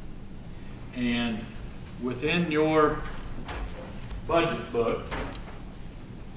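A middle-aged man answers questions calmly through a microphone.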